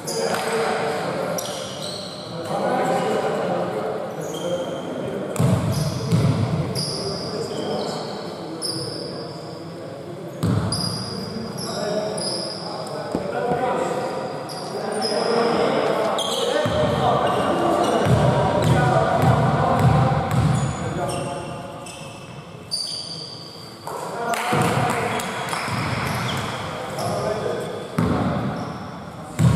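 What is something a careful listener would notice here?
Sneakers squeak sharply on a wooden court in an echoing hall.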